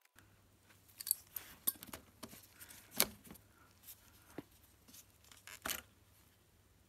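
Small plastic parts click and tap as hands handle them.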